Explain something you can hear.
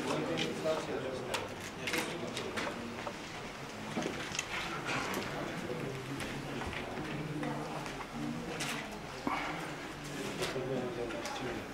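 Chess pieces click onto a wooden board.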